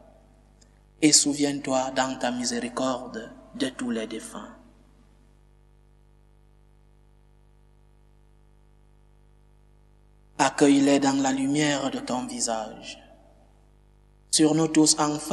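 A man chants a prayer through a microphone in a slightly echoing room.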